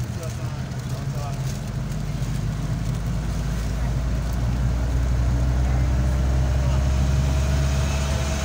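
Tyres rumble on asphalt.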